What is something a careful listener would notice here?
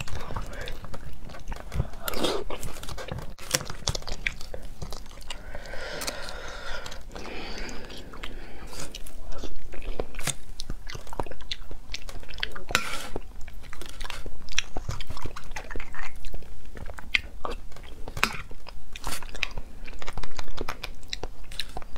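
Utensils scrape and click against bone.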